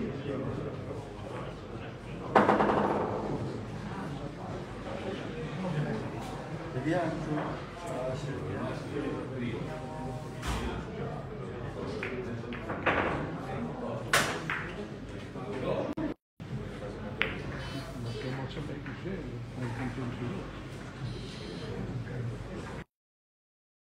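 Several men murmur and talk quietly nearby.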